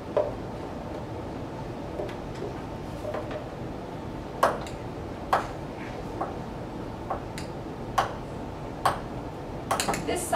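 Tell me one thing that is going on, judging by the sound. Utensils clink and knock against dishes.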